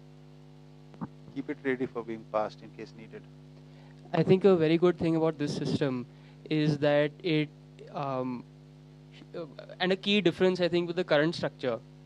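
A young man speaks into a microphone, heard through loudspeakers, in short bursts.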